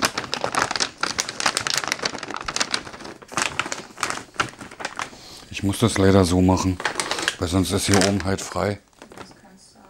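Wrapping paper crinkles and rustles under hands.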